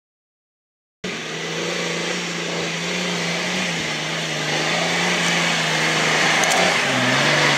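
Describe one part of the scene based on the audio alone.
An engine roars as an off-road vehicle climbs a rough dirt slope.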